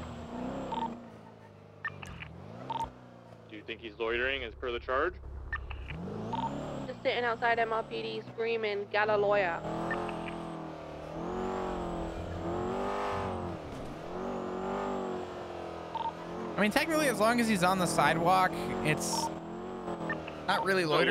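A car engine hums and revs as a car drives.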